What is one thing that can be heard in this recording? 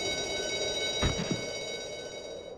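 A bat flutters its wings.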